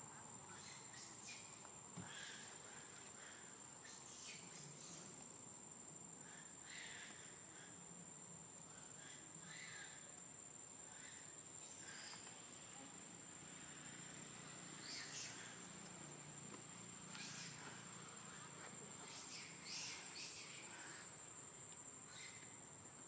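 A baby monkey squeaks in short, high cries.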